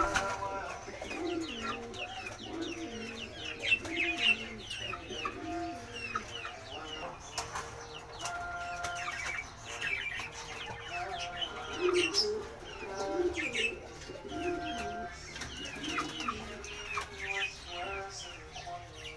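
A pigeon coos softly.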